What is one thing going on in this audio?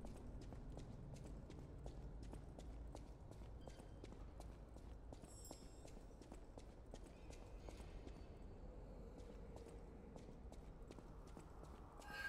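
Footsteps tap quickly and steadily on a hard stone floor.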